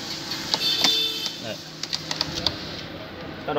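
A car door latch clicks.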